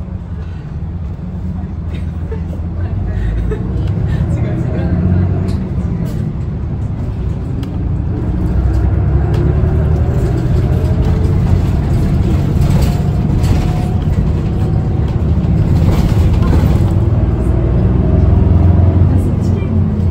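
Tyres roll over the road.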